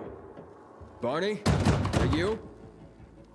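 A fist knocks on a door.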